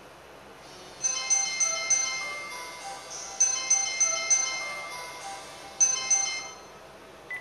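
A phone handset beeps as its keys are pressed.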